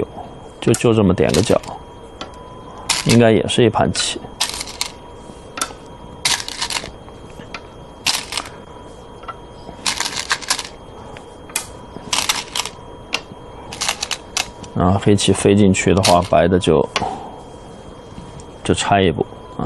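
A man speaks calmly into a microphone, in short bursts.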